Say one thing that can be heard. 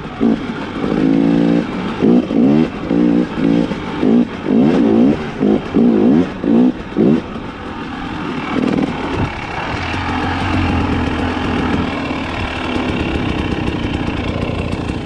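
A dirt bike engine revs up and down hard, close by.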